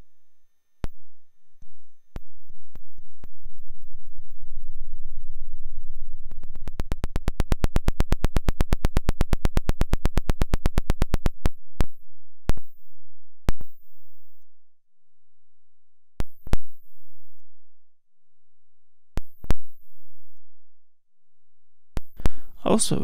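A synthesizer plays single sharp, decaying clicks and thumps.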